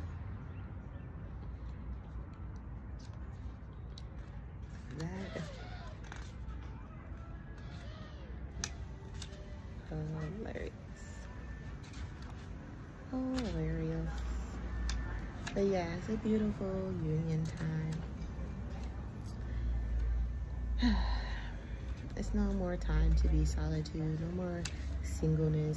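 Paper rustles as cards are handled.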